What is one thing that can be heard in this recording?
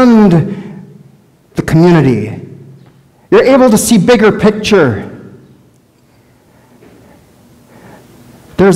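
A man speaks clearly into a microphone in a room with a slight echo, pausing between phrases.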